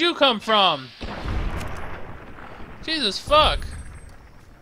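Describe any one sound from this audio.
A gun fires loudly.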